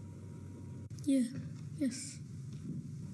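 A boy speaks into a microphone.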